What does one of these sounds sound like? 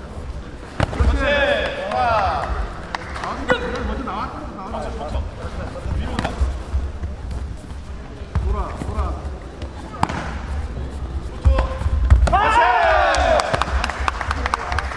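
Young men shout sharply as they attack.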